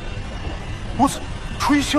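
A young man exclaims in surprise close by.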